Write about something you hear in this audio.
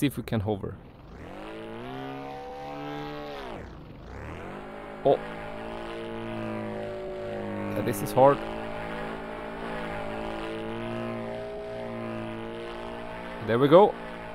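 A small model plane engine drones steadily and changes pitch as it flies.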